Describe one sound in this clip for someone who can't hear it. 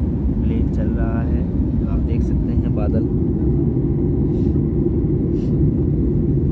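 A plane's engines roar steadily in flight.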